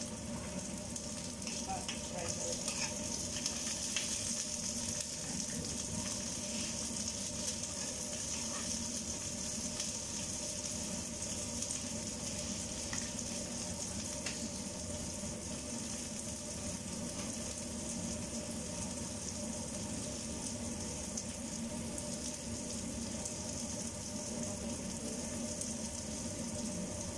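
Vegetables sizzle steadily in a hot frying pan.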